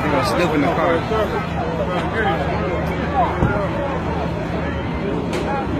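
A crowd of men and women shout and talk excitedly close by, outdoors.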